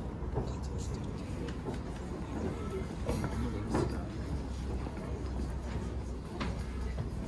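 Children chatter and call out.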